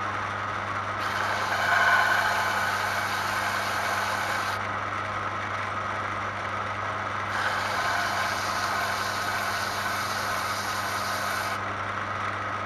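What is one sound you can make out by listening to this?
A small piece is ground against a belt sander with a harsh scraping whir.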